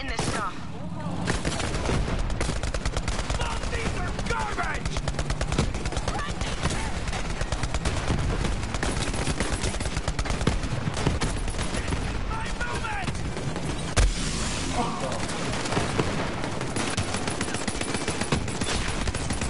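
Rapid gunfire rattles in a game.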